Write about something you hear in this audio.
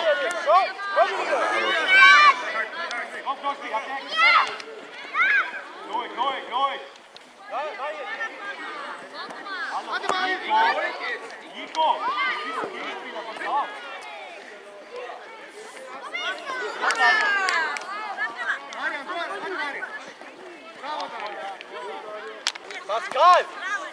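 Young children shout and call out to each other outdoors.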